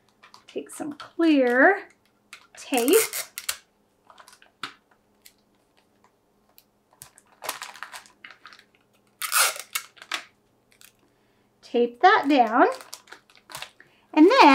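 Plastic wrap crinkles under hands.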